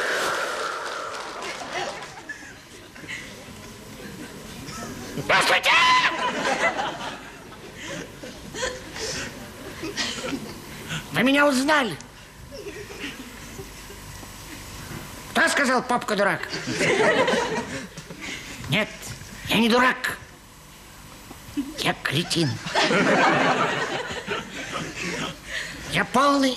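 A man speaks theatrically in bursts, with pauses between phrases.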